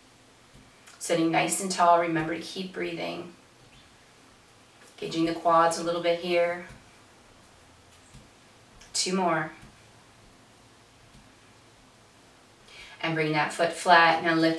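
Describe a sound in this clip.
A middle-aged woman speaks calmly and slowly close to a microphone, pausing between phrases.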